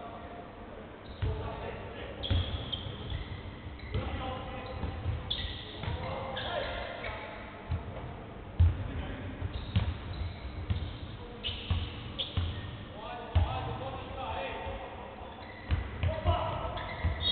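A basketball bounces on a hard court, thudding in a large echoing hall.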